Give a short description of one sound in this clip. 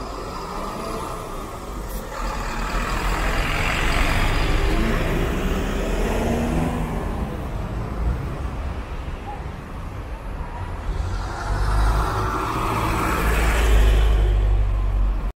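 Traffic drones steadily along the street.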